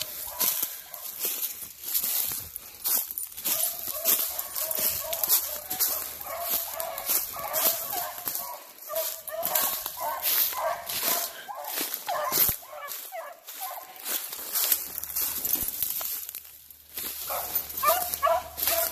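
Dry leaves crunch and rustle underfoot with quick footsteps.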